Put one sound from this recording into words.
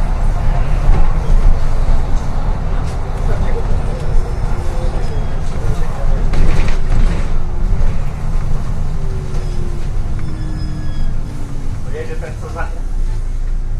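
A bus engine rumbles steadily as the bus drives along a street.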